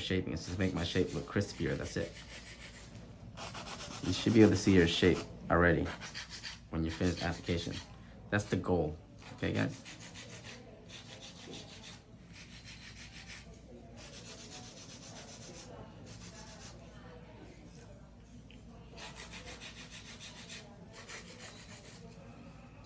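A nail file rasps against a fingernail.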